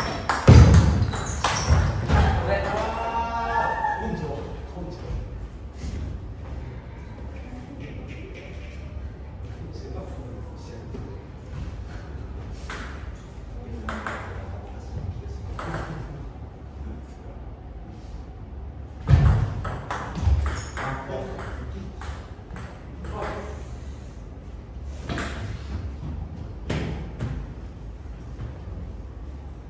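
A ping-pong ball clicks sharply back and forth on paddles and a table.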